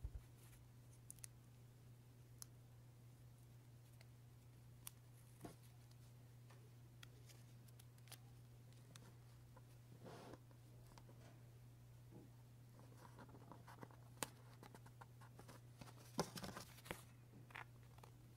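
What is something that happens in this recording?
Paper rustles and crinkles as hands handle it.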